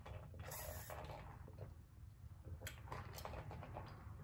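A man slurps a drink through a straw.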